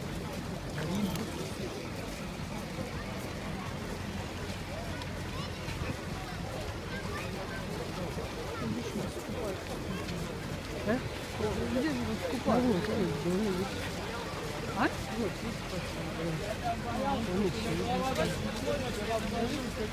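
A crowd of men and women murmurs and chatters outdoors.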